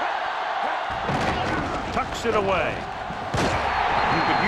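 Football players' pads crash together in a tackle.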